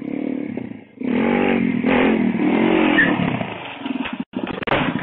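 A motorbike engine revs loudly.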